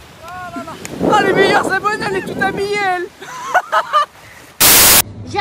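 Legs splash through shallow water.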